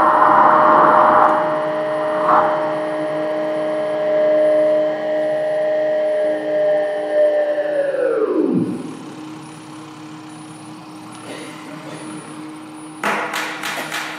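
An electric violin is bowed, with a held note sliding down in pitch.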